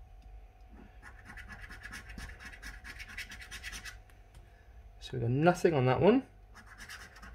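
A coin scratches rapidly at a scratch card.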